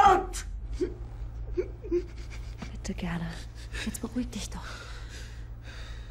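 A young woman sobs softly.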